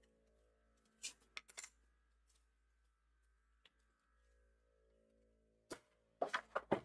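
Thin wooden strips click and tap against each other.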